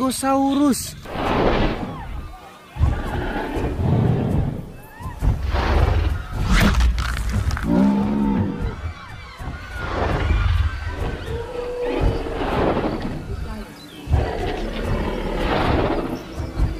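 A large creature bellows and grunts loudly.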